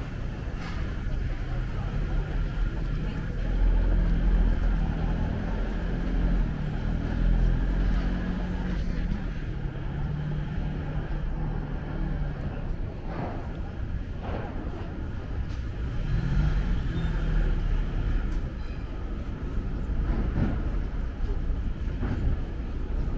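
Outdoors, steady city traffic hums in the background.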